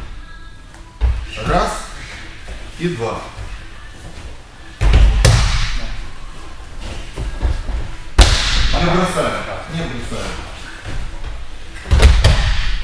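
Bodies thud heavily onto a padded floor.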